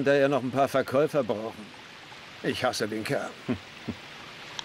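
An elderly man speaks with concern, close by.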